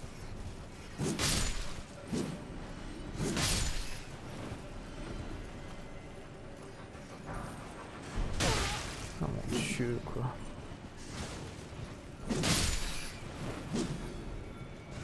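Sword blows whoosh and strike enemies.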